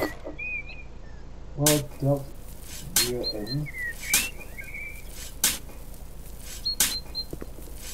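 A shovel digs into soil.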